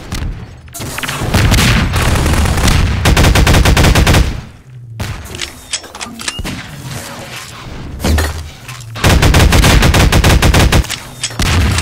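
An energy weapon fires rapid bursts of shots.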